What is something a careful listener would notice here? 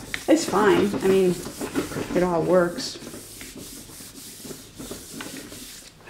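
Hands smooth and rub over a sheet of paper.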